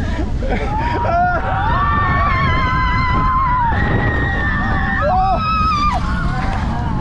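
Riders scream together nearby.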